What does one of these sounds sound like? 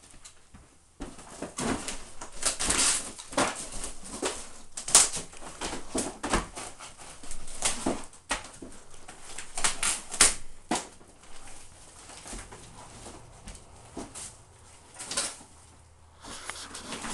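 A man tears drywall and panelling from a wall with a crowbar, with loud cracks and scrapes.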